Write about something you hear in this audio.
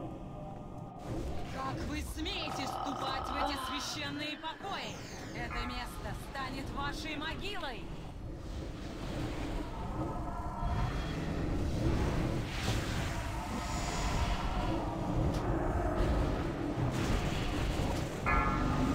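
Magic spells crackle and whoosh in a busy battle.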